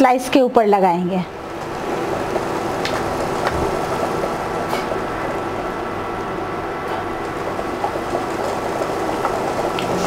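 A spoon spreads paste over bread.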